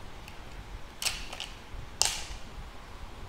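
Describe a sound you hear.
A plastic part of a fishing rod clicks and knocks in a hand.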